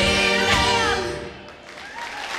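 Two women sing together into microphones.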